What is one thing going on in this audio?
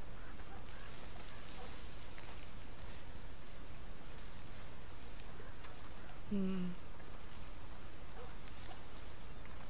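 Dry stalks rustle and swish as a man walks through tall crops.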